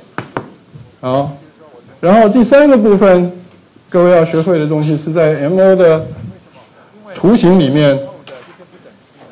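A man lectures loudly through a microphone in an echoing room.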